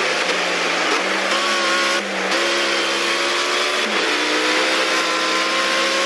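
A racing car engine roars loudly, its pitch stepping up through the gears.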